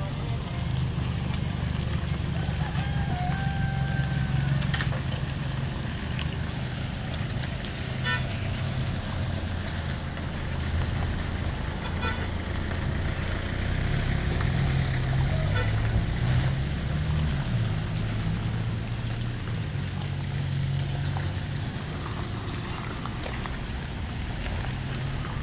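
Car engines idle and hum close by.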